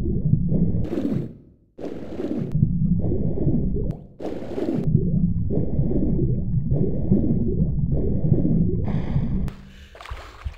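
Water swirls and bubbles as a figure swims underwater.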